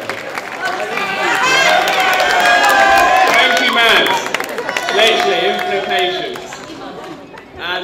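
A young man speaks cheerfully through a microphone.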